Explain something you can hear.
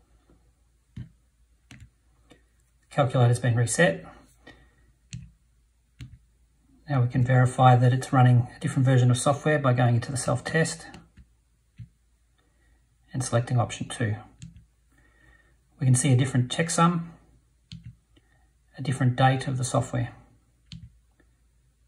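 Calculator keys click softly as fingers press them.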